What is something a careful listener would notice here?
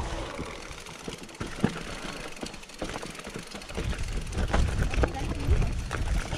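A bicycle's frame and parts clatter over bumps.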